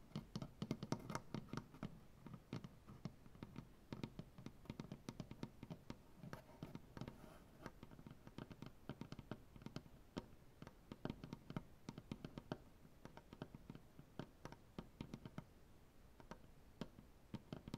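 Fingernails tap and scratch rapidly on a wooden surface, close up.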